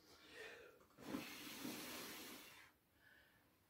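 A young man blows out a candle.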